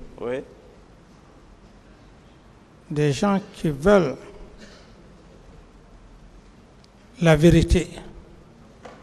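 A middle-aged man speaks slowly in short phrases with long pauses.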